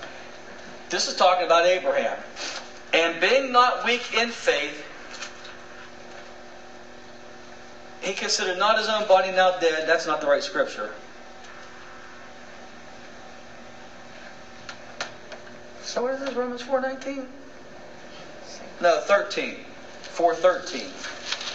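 A middle-aged man speaks calmly in bursts, with pauses, in a room with some echo.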